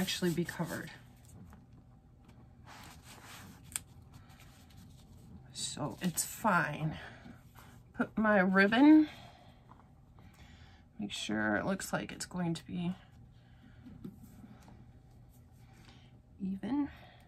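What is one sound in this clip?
Paper rustles softly as hands smooth and press it flat.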